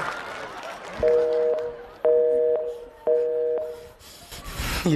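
A phone rings with a repeating tone.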